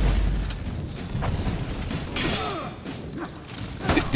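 Metal blades clash and ring sharply.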